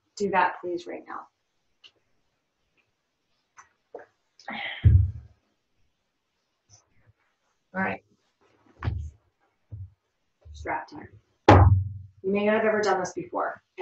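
A woman talks calmly and clearly, close by, in short phrases.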